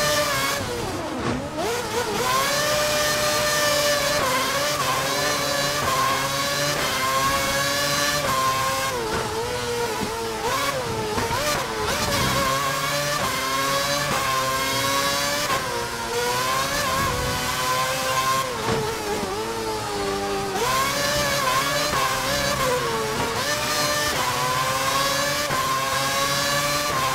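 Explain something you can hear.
A Formula 1 car's V8 engine screams at full throttle, shifting up and down through the gears.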